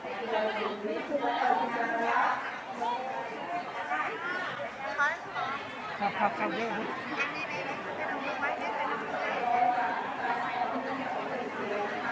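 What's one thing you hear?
A crowd of men and women chatters all around in the open air.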